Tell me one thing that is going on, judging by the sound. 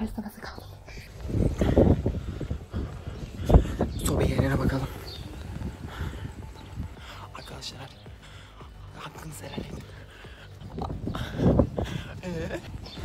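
A young man talks in a low voice close to the microphone.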